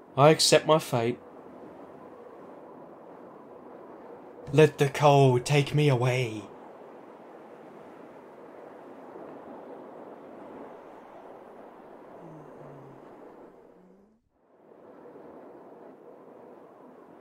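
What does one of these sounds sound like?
Wind blows steadily.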